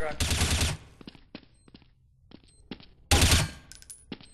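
Footsteps tap on hard ground at a steady walking pace.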